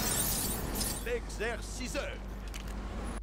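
Short electronic blips chime one after another.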